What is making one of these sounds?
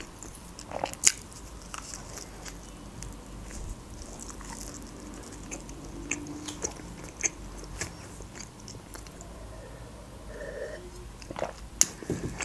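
A young woman chews and crunches food close to a microphone.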